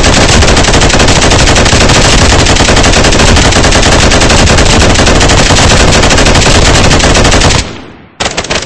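A rifle fires rapidly in a long, loud burst.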